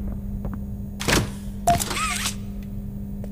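A door swings open with a creak.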